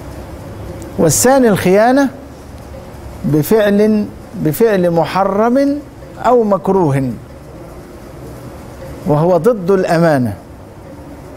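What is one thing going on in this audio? A middle-aged man speaks calmly into a close microphone, reading aloud in a chanting, melodic voice.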